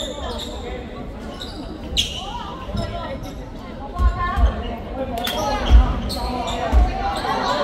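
A crowd of young spectators chatters and calls out.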